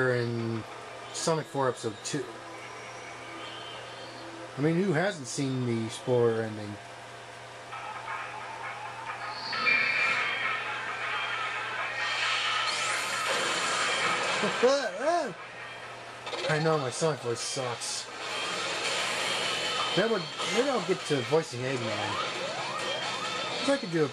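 Bright electronic game music plays through a loudspeaker.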